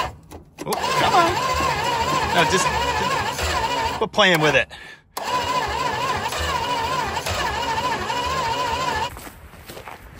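An engine idles roughly up close with a wavering hum.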